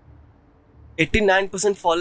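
A young man speaks clearly and firmly.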